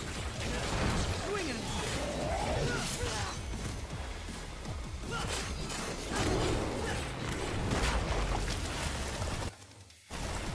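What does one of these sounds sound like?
Sword strikes clash and thud rapidly against a monster.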